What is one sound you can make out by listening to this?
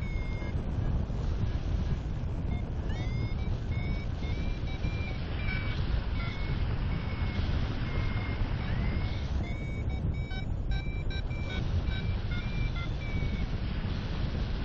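Strong wind rushes steadily and loudly past.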